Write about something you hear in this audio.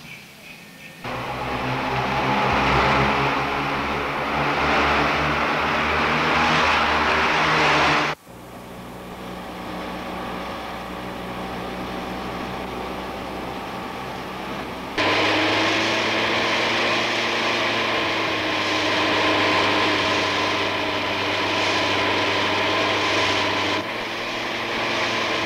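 A small car engine drones steadily, echoing in a tunnel.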